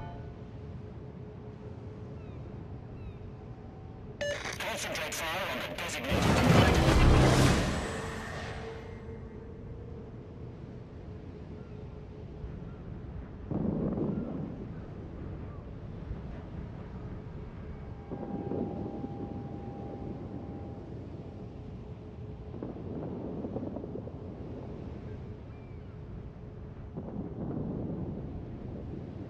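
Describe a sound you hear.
Water rushes and churns along a moving ship's hull.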